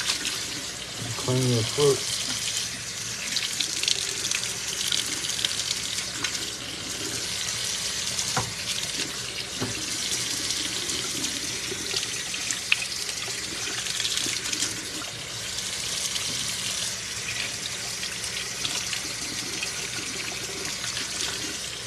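Hands rinse vegetables under running water.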